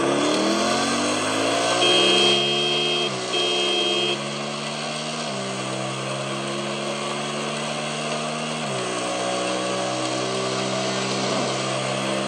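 A motorcycle engine revs hard and shifts up through the gears.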